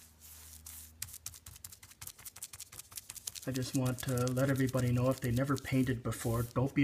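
A scraper scrapes in short rapid strokes along a hard edge.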